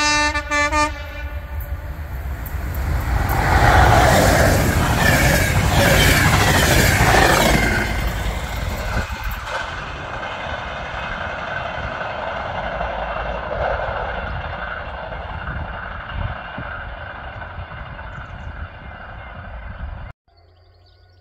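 A train rumbles and clatters loudly past on the tracks, then fades into the distance.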